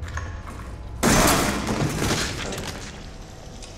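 A shotgun fires with a loud, echoing boom.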